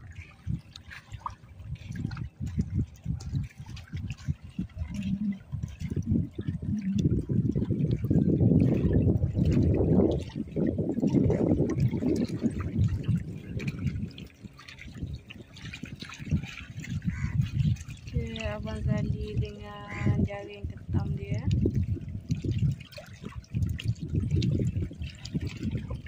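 Small waves lap against a rocky shore.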